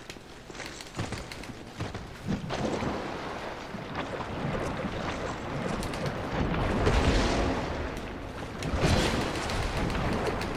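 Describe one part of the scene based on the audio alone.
Heavy weapons swing and strike with loud thuds.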